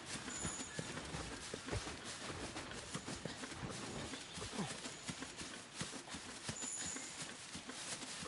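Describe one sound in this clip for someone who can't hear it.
Tall grass rustles and swishes as someone pushes through it.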